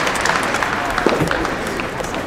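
A soft tennis racket strikes a ball.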